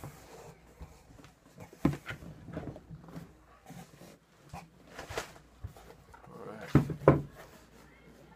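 A cardboard box scrapes and thumps as it is opened.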